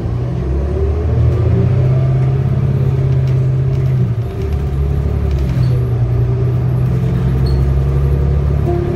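The bus interior rattles and creaks over bumps.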